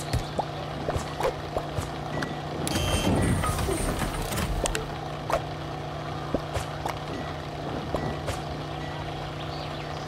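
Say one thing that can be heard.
Cheerful video game music plays steadily.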